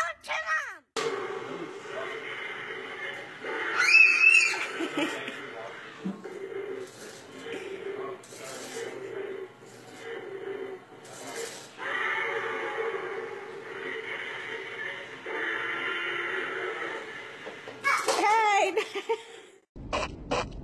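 A toy dinosaur whirs and growls steadily as it walks.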